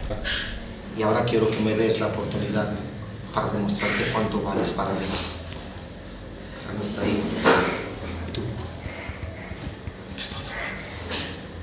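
A young man speaks close by in an upset, pleading tone.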